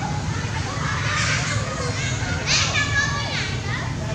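A baby monkey squeals in short, high cries.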